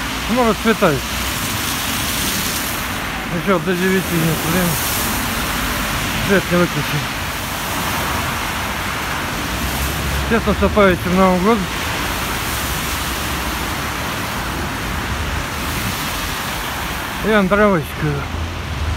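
Car tyres hiss along a wet road nearby.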